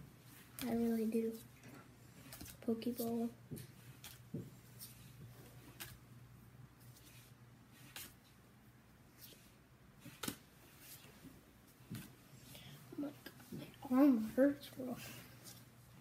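A young boy speaks briefly and quietly, close by.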